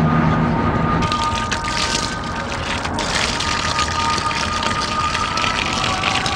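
Water gushes from a hose and splashes.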